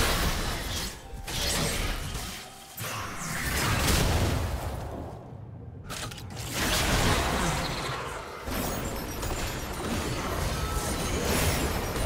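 Magic blasts and clashing weapons sound in a game battle.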